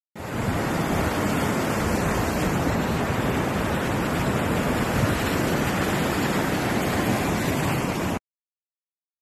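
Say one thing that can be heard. Strong wind blows hard outdoors.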